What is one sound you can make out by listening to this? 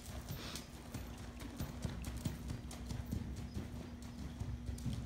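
A horse's hooves thud rhythmically on soft sand.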